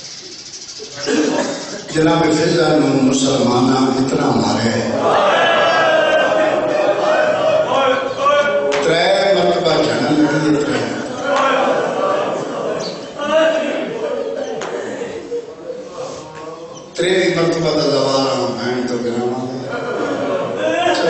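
A middle-aged man speaks passionately into a microphone, heard through loudspeakers.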